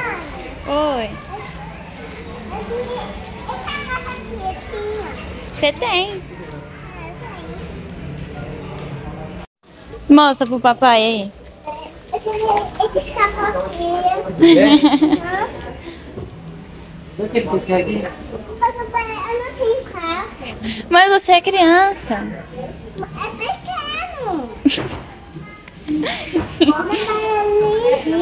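A young child babbles and chatters close by.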